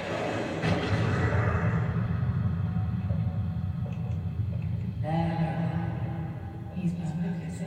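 Video game sounds play from a television loudspeaker.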